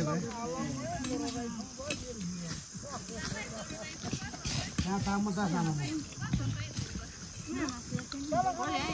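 A woman talks nearby with animation, outdoors.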